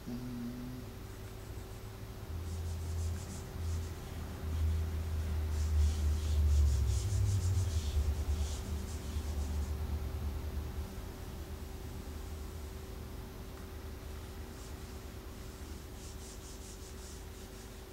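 An eraser rubs back and forth on a whiteboard in quick strokes.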